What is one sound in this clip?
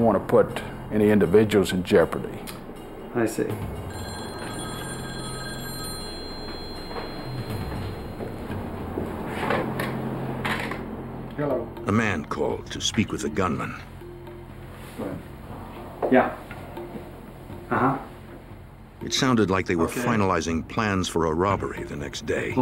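A middle-aged man speaks tensely nearby.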